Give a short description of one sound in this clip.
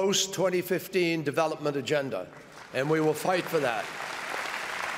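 A man speaks slowly and firmly through a microphone in a large echoing hall.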